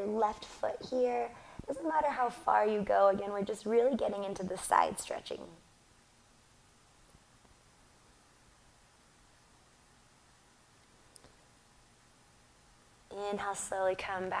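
A young woman speaks calmly and softly into a close microphone.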